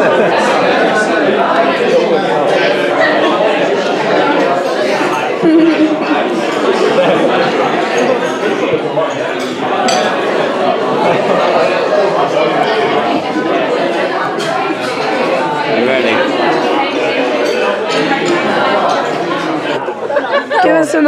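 Many people chatter and talk all around.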